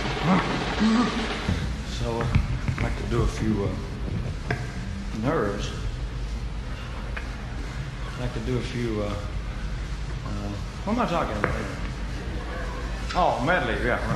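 A man's voice comes through a microphone.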